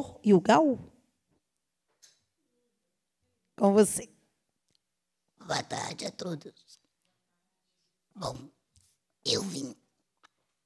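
A woman speaks into a microphone in short bursts, with pauses between.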